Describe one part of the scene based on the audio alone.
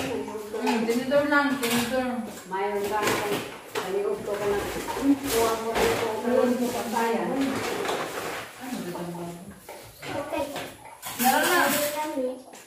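Young children talk and call out nearby.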